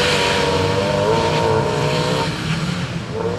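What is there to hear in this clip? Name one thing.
A rally car engine revs hard and roars as the car speeds away.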